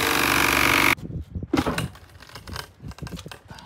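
A loose panel scrapes and rattles as it is pulled free.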